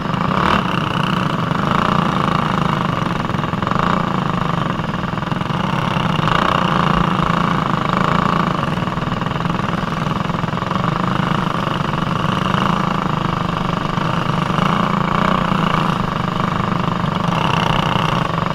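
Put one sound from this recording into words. Other kart engines whine nearby.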